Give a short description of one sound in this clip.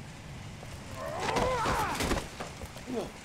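A man cries out loudly in pain.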